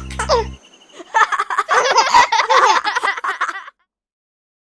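A young child sings cheerfully.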